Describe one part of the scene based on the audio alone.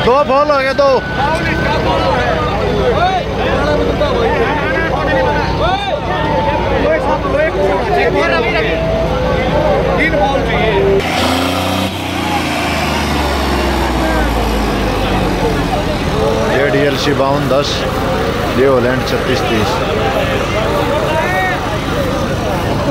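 A tractor engine rumbles and revs.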